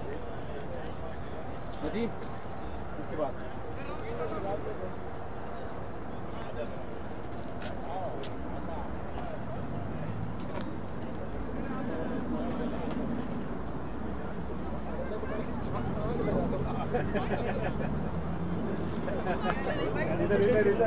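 Men talk in the distance outdoors.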